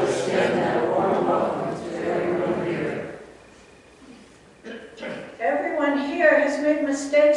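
An elderly woman reads aloud calmly into a microphone.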